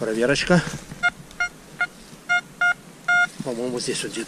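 A metal detector beeps in short repeated tones.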